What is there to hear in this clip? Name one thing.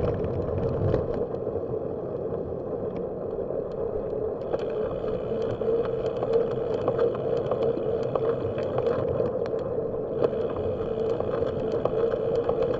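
Tyres roll steadily over a paved path.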